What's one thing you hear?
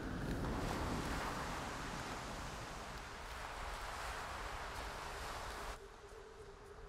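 Waves wash softly onto a shore.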